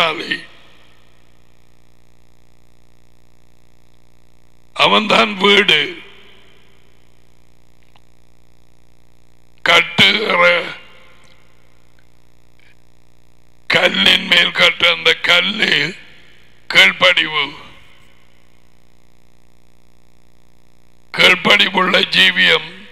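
A middle-aged man speaks calmly into a headset microphone, in short phrases with pauses.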